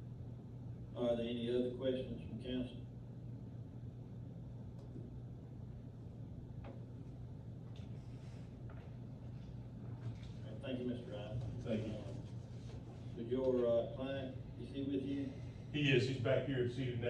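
A man speaks calmly from across a room with slight echo.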